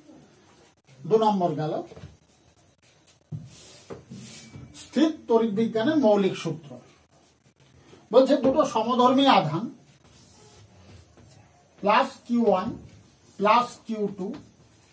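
A man speaks calmly, like a teacher explaining, close by.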